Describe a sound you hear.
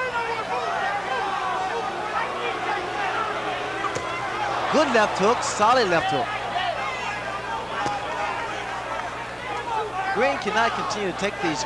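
A large crowd cheers and shouts in a big arena.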